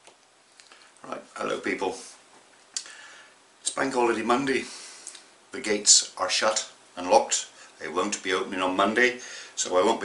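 A middle-aged man talks calmly and close by into a microphone.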